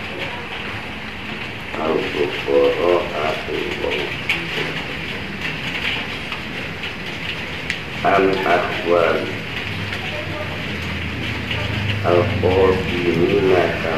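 Leaves rustle softly in a light breeze outdoors.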